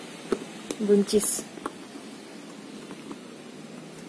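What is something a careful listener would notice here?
Tomatoes roll and knock softly in a plastic basket as a hand stirs them.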